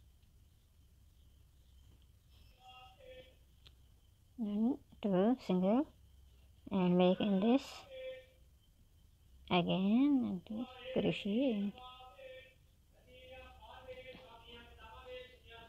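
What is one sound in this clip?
A crochet hook pulls yarn with a soft rustle.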